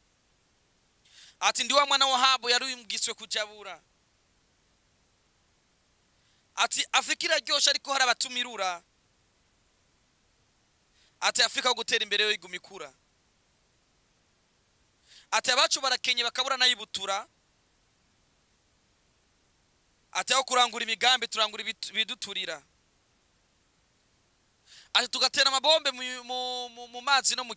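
A young man speaks into a microphone in short bursts with pauses between them.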